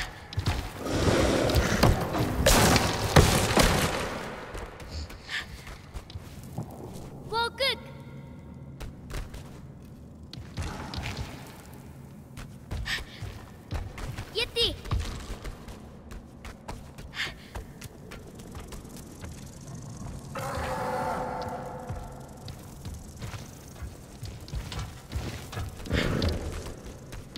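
Light footsteps run across stone.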